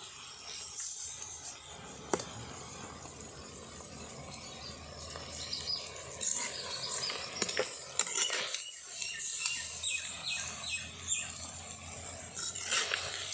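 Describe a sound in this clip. A metal ladle scrapes and clinks against a clay pot.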